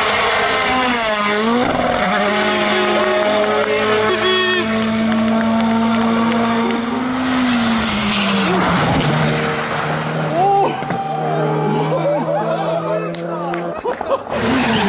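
A car engine pops and crackles as it shifts gears.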